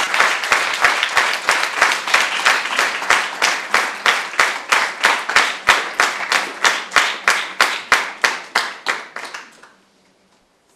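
An audience applauds in rhythmic, steady claps.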